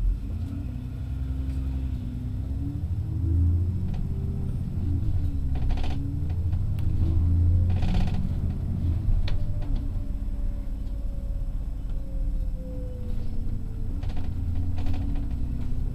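A large vehicle's engine hums and drones steadily, rising and falling in pitch as it changes speed.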